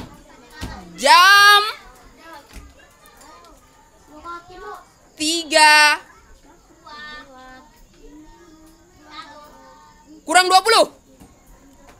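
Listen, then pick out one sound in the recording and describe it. Young children shout and call out loudly in high voices nearby.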